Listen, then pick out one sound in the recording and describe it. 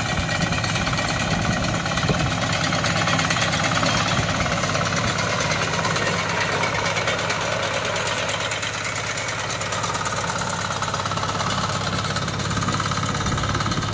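Cutter blades clatter through dry crop stalks.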